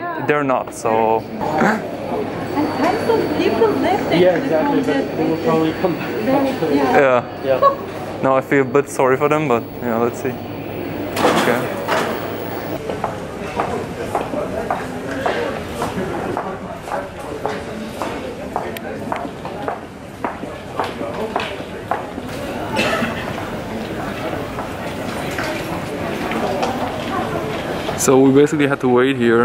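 Footsteps patter across a hard floor.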